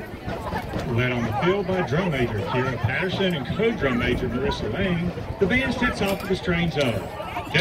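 A marching band plays loud brass music outdoors.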